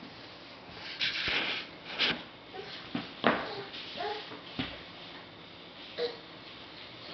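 Small hands pat and thump on a soft floor mat as babies crawl.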